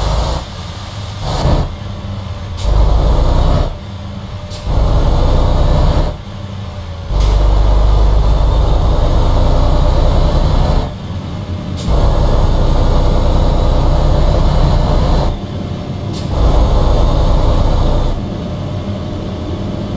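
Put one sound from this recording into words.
A truck engine rumbles low, swelling and easing off in bursts.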